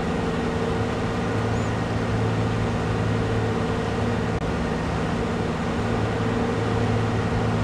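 A combine harvester engine drones steadily.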